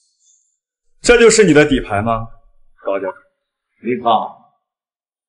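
A young man speaks tauntingly, close by.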